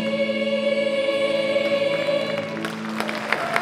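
A large choir of young women sings a held chord that echoes in a hall.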